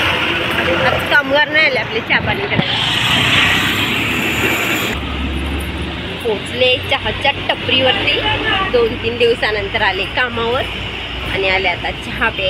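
A woman talks close to a phone microphone.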